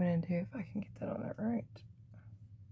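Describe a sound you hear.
A woman speaks close by in a calm voice.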